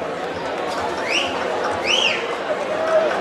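Someone whistles sharply twice.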